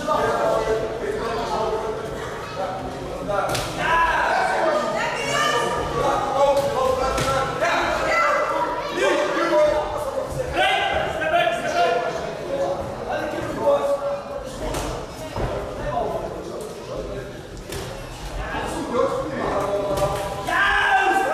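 Punches and kicks thud on bodies.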